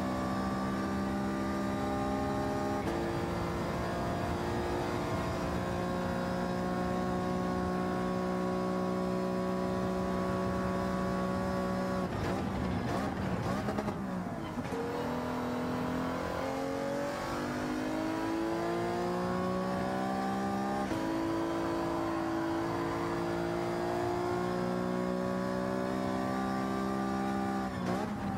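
A racing car engine roars at high revs, shifting gears up and down.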